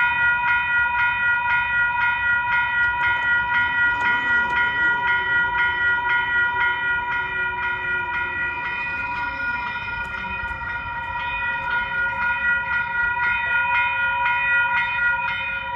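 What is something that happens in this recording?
A railway crossing bell rings rapidly and steadily.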